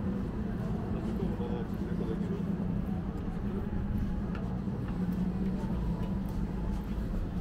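Footsteps tap on paved ground outdoors.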